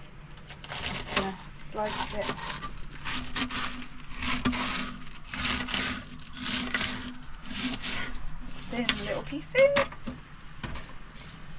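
A knife chops on a cutting board.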